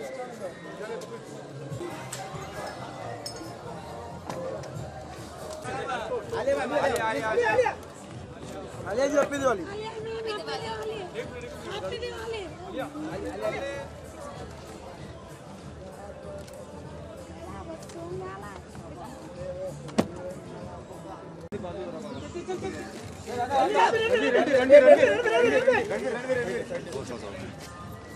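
A crowd of men call out and chatter nearby.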